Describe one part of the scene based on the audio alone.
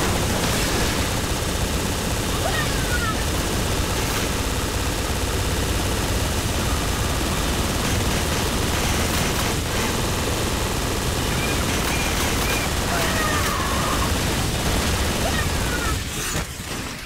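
A hovering vehicle's engine roars steadily.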